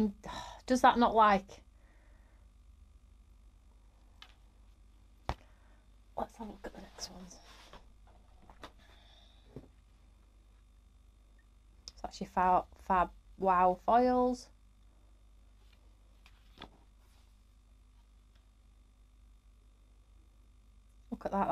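Card stock rustles and taps as a woman handles cards.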